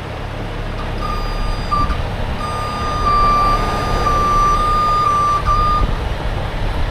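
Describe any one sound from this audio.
A crane's warning beeper sounds in a steady tone, pausing briefly.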